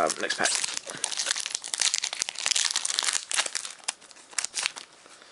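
A foil card pack crinkles and rustles in hands.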